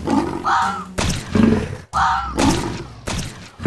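Sharp striking blows land in quick succession.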